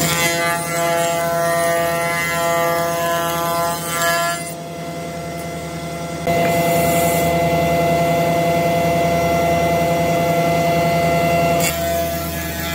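A belt sander runs with a steady, loud hum.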